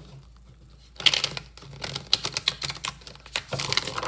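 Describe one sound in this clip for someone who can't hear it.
Playing cards riffle and flutter quickly as they are shuffled by hand.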